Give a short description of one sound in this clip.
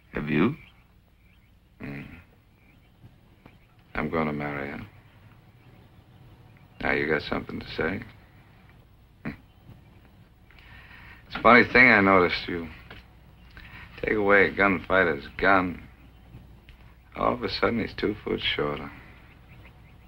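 A man speaks in a low, serious voice, close by.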